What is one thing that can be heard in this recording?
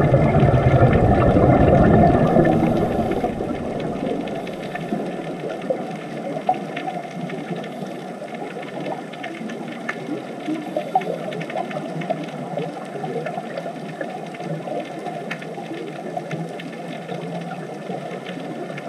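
Air bubbles gurgle and crackle underwater.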